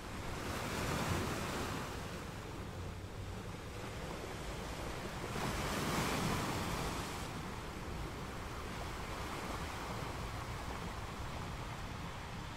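Ocean waves break and crash onto rocks, swelling and fading in turn.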